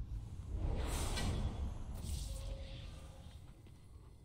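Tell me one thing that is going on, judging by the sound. Magic spells whoosh and crackle loudly.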